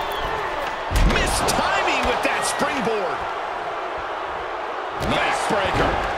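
Heavy thuds sound as a body slams onto a wrestling mat.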